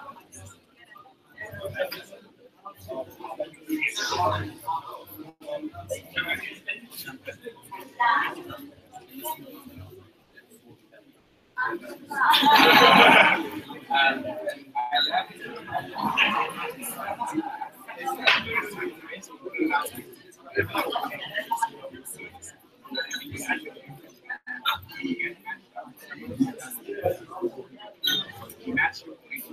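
A crowd of men and women chat and talk over one another.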